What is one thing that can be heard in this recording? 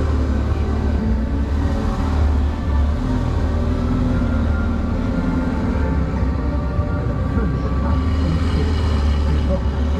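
A Ferrari V8 sports car pulls away slowly across a square.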